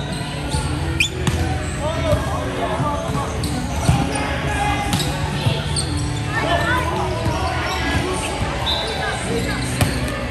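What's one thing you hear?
A volleyball is struck by hands in a large echoing hall.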